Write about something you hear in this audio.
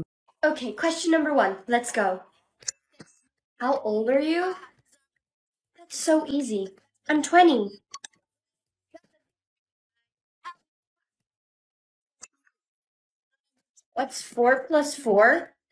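A young woman speaks with animation, close to the microphone.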